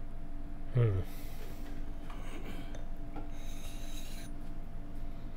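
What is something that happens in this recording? A man sniffs close to a microphone.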